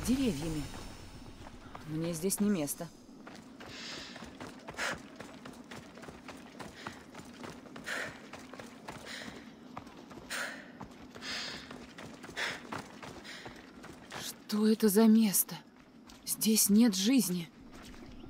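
Footsteps tread steadily over dirt and stones.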